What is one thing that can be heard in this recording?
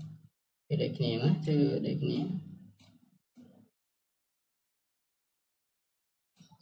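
A man talks calmly into a close microphone.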